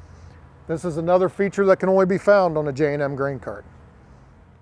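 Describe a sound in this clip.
A middle-aged man speaks calmly and clearly into a microphone.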